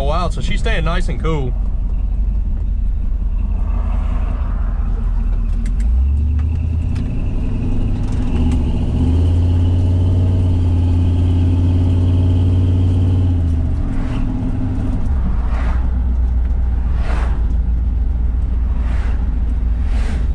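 A truck engine rumbles loudly, revving up and down as it drives.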